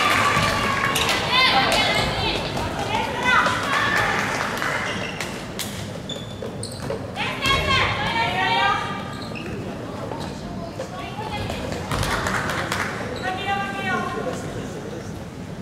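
Young players call out to each other.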